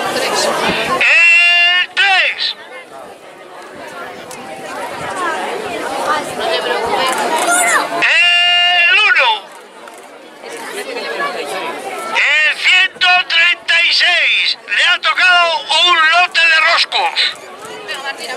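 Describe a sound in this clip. A man speaks loudly through a megaphone outdoors.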